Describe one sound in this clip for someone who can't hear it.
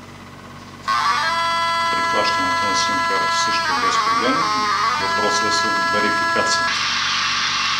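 An electronic detector sounds a chord of steady electronic tones.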